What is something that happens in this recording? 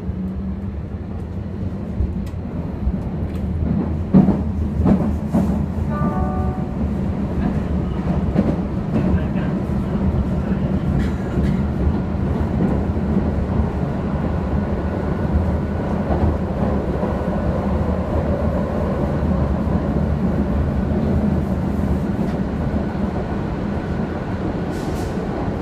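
Metal rattles and clatters inside a moving train carriage.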